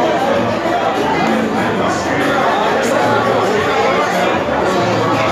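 Pool balls click against each other.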